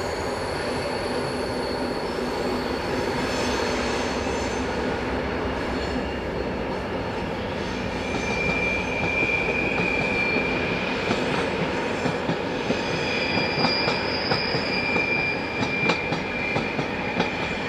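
A diesel locomotive rumbles steadily as a passenger train rolls past.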